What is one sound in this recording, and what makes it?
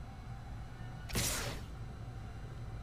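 A short whooshing game sound effect plays.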